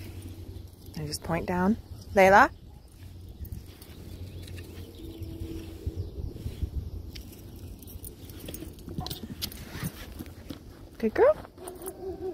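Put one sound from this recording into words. A small dog whines in high, rising yelps.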